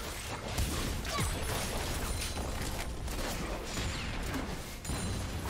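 Video game spells whoosh and crackle during a battle.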